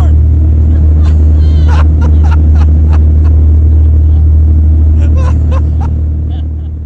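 A young man laughs nearby.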